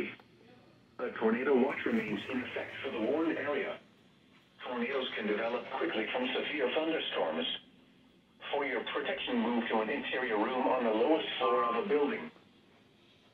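A synthetic voice reads out an alert through a small radio speaker.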